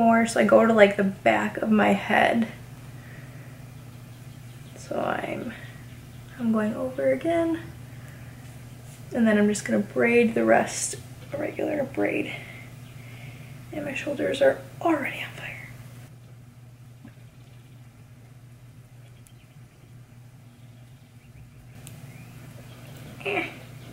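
A young woman talks calmly and close by in bursts between pauses.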